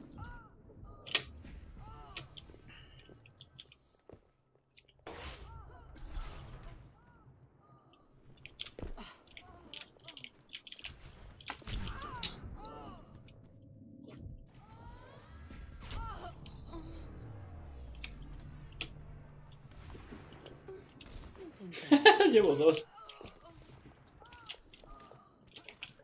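Video game sound effects chime and whoosh.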